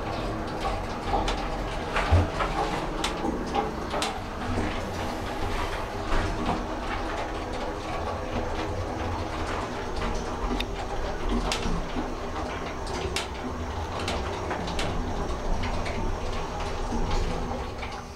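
An elevator car rattles and clicks as it moves.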